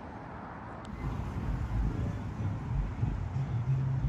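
A car drives past on a nearby street.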